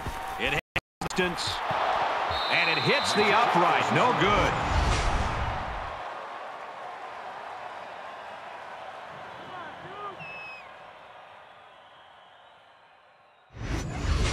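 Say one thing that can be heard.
A large crowd roars and cheers.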